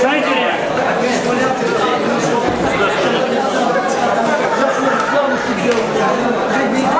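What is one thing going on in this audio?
A crowd of men and women chatters loudly in a large echoing hall.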